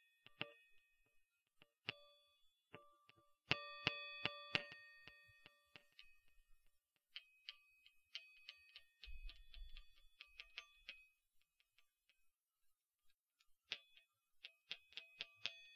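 A small metal object clicks and rings softly close to a microphone.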